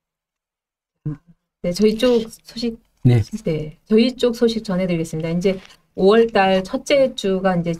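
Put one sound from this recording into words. A woman speaks calmly and clearly, close to a microphone.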